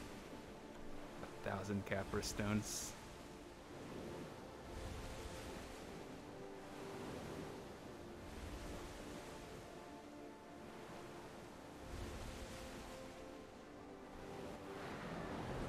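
Calm orchestral music plays steadily.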